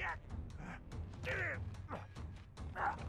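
A man laughs maniacally.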